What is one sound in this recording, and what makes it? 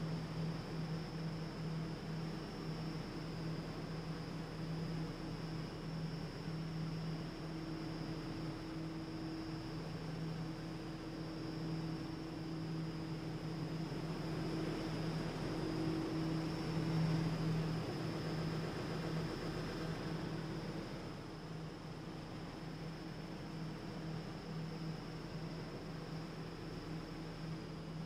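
A subway train's motor hums steadily while idling.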